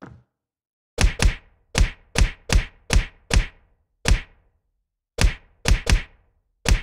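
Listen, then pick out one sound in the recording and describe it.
Fists punch a wooden surface with heavy, rapid thuds.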